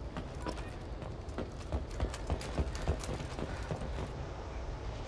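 Heavy footsteps thud on a hard metal floor.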